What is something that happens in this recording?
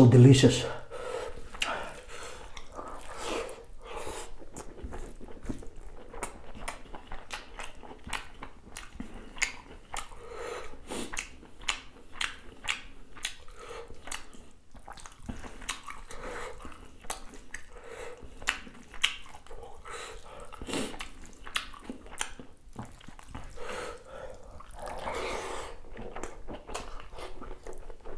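A man chews food noisily, close to the microphone.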